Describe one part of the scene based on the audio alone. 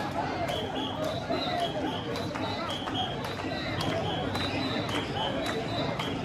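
Many people chatter in a busy crowd outdoors.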